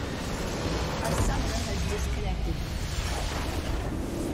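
A large structure explodes with a deep boom.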